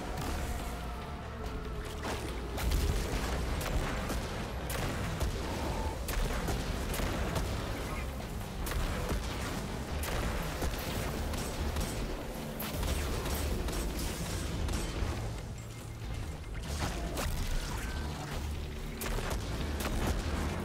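Explosions boom and rumble deeply.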